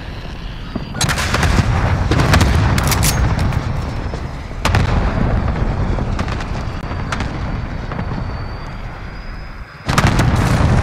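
A jet roars low overhead.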